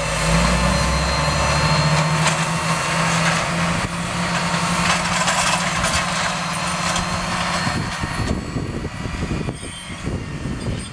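A wide planter rattles and clatters over dry soil.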